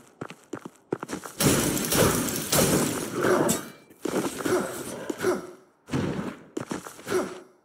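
A sword swings and strikes with sharp slashes.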